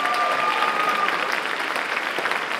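A choir of girls sings a final held note.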